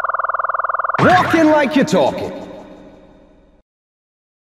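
A game sound effect bursts out loudly and fades away.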